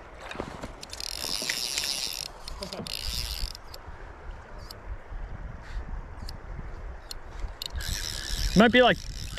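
A fly reel's drag buzzes as a fish pulls out line.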